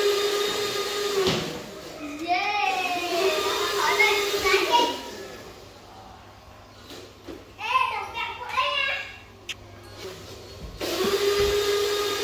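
A small electric toy motor whines steadily.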